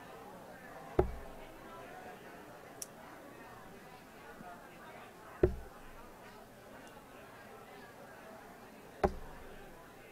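Darts thud into a dartboard one after another.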